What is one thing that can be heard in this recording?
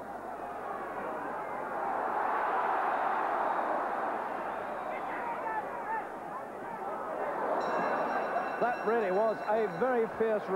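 A large crowd cheers and roars in a big echoing hall.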